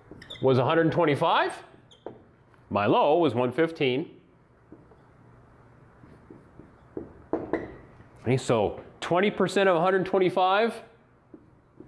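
A middle-aged man speaks calmly and clearly, as if explaining to a class.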